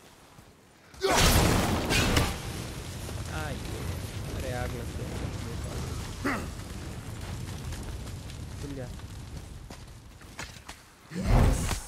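Flames roar and crackle steadily.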